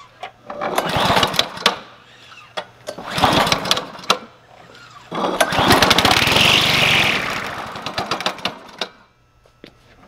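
A lawn mower's pull cord is yanked several times.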